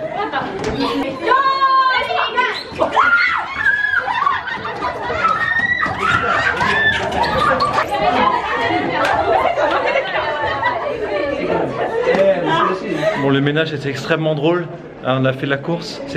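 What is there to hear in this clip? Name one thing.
Teenage girls shout and laugh excitedly.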